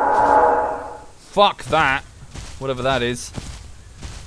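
A large creature lets out deep, wavering calls.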